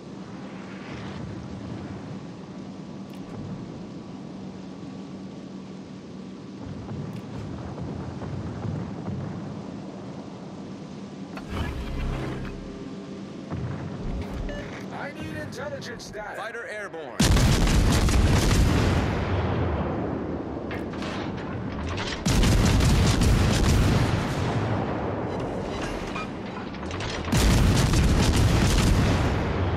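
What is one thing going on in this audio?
A ship's engine rumbles steadily over waves.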